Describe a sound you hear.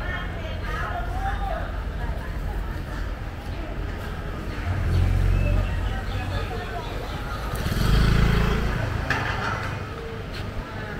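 Low traffic and street noise hum steadily outdoors, swelling now and then.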